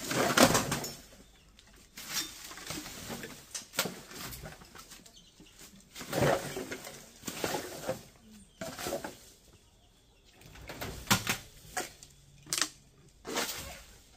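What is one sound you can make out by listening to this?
Chickens cluck and scratch close by.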